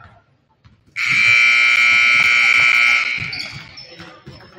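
A loud buzzer blares steadily for a couple of seconds.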